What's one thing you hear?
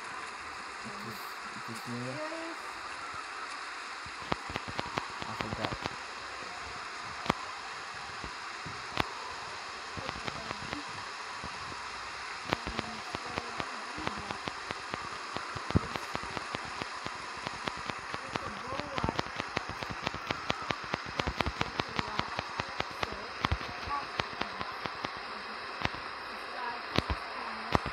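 Steady rain falls and hisses.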